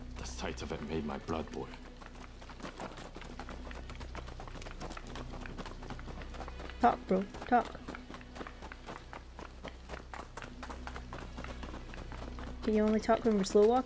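Footsteps run quickly on a hard street.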